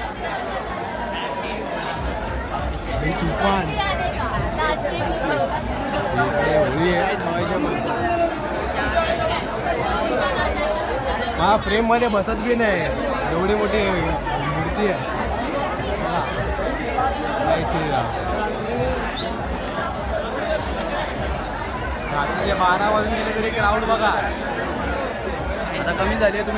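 A large crowd chatters and shouts all around, outdoors.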